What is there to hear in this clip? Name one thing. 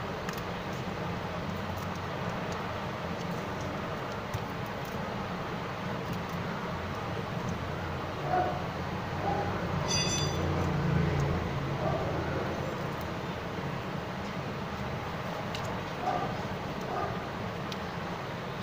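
Small parts of a phone click and scrape as hands handle them.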